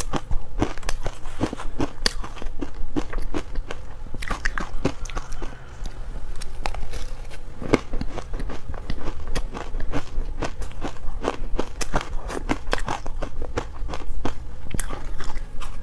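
A metal spoon scrapes and clinks against a metal bowl.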